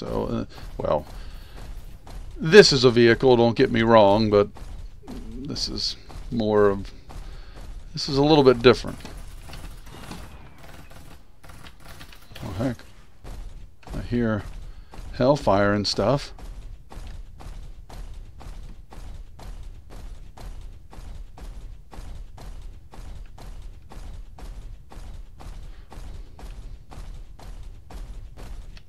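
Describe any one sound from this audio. Heavy metallic footsteps clank in a steady rhythm.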